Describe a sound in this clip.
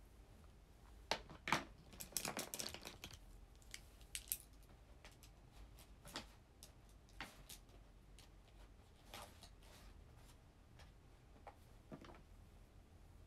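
Objects knock and rustle close by.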